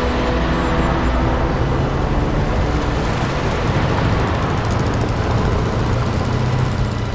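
A truck engine rumbles as it drives past.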